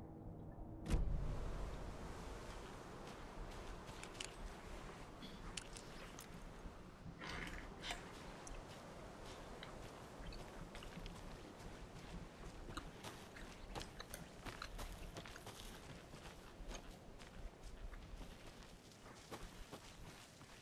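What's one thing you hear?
Footsteps crunch on leaves and twigs outdoors.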